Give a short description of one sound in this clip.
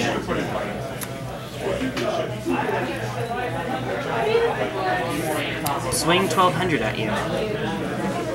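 Playing cards are laid down and slide on a soft mat.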